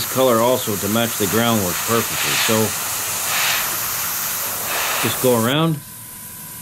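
An airbrush hisses steadily as it sprays paint up close.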